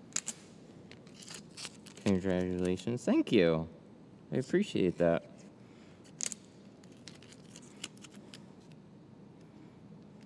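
A strip of paper backing crinkles as hands peel it off.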